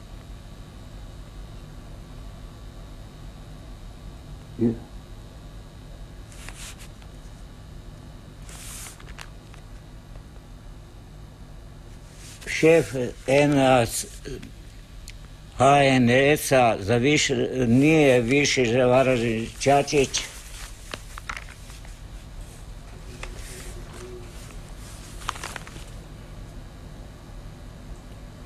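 A newspaper rustles as its pages are handled.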